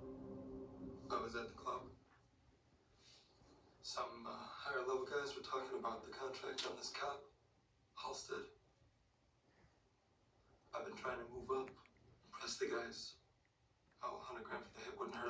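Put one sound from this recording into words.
Dialogue plays from a television speaker in a room.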